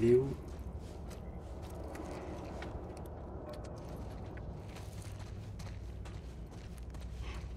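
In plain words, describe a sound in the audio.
Footsteps crunch slowly over a littered floor.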